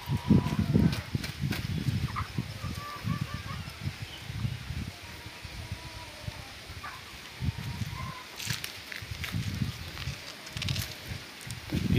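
Footsteps crunch on dry leaves close by.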